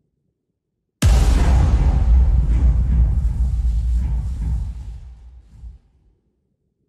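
A small submarine rumbles deeply underwater, then fades away.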